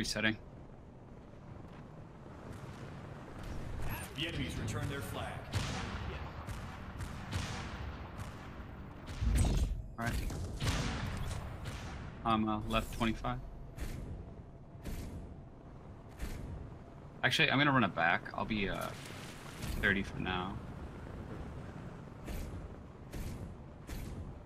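Game gunfire and effects crackle and whoosh.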